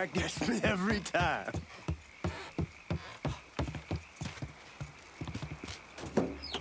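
Footsteps thump quickly on wooden boards.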